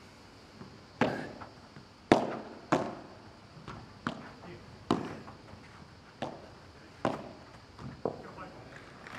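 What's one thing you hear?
A padel ball is struck back and forth with sharp pops.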